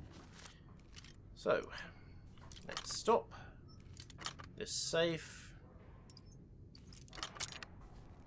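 Metal lock pins click as a lock is picked.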